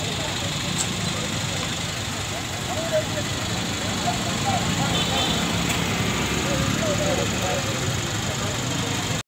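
A crowd of men talks and calls out excitedly nearby, outdoors.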